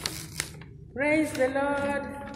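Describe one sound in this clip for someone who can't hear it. A woman speaks cheerfully and clearly into a close microphone.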